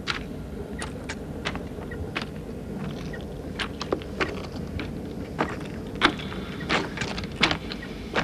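A rail vehicle rumbles slowly through a tunnel.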